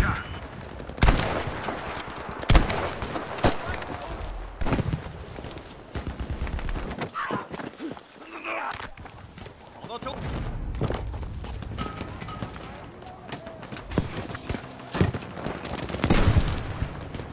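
Explosions thud and rumble.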